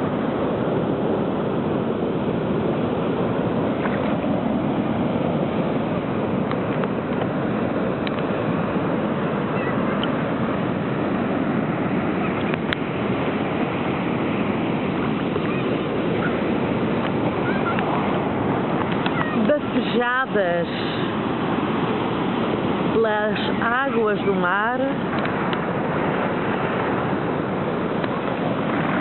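Waves crash and wash over rocks nearby.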